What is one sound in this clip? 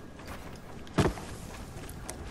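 Wooden walls snap into place with sharp knocks in a video game.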